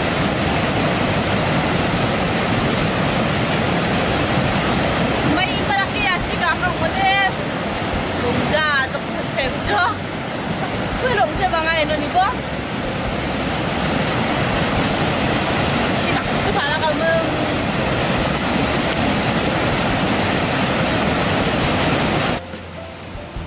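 Floodwater roars loudly over a weir.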